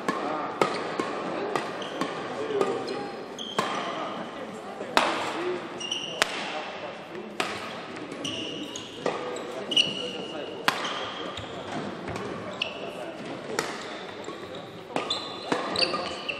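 Shuttlecock hits crack sharply back and forth in a large echoing hall.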